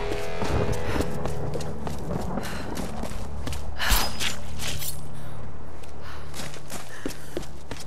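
Footsteps crunch over stone and undergrowth.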